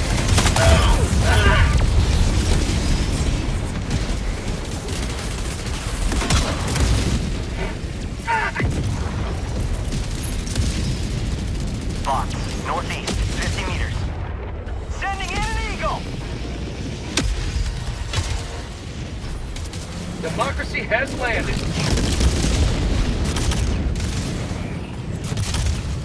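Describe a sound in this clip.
Gunfire and explosions rumble in a video game battle.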